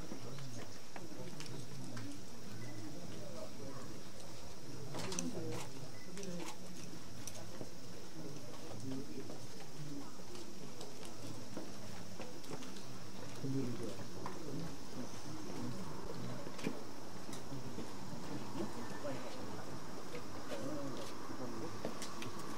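A crowd of men and women murmur and talk quietly outdoors.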